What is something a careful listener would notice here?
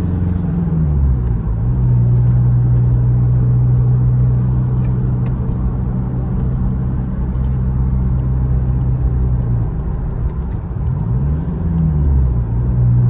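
Tyres roll on smooth pavement.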